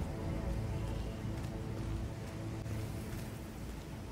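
Footsteps crunch slowly on a gravel path.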